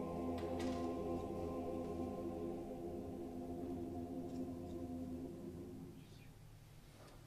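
A choir sings a sustained chord in a large echoing hall and fades out.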